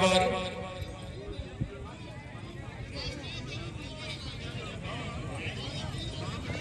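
A crowd chatters outdoors in the distance.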